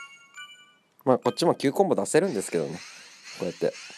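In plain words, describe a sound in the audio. Electronic chimes ring out in quick succession.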